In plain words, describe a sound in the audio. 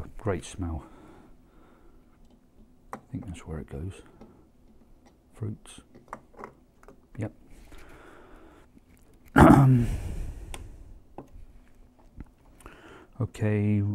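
Small plastic items click against a tabletop.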